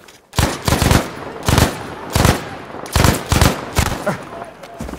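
A rifle fires loud shots in quick bursts.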